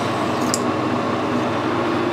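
A cutting tool scrapes against spinning metal.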